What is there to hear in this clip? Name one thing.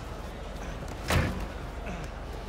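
A car door slams shut.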